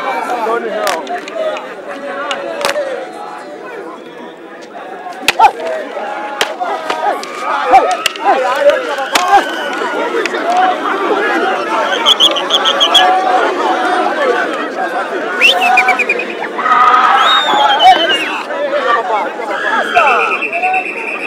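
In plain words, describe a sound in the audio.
A large crowd shouts and cheers outdoors.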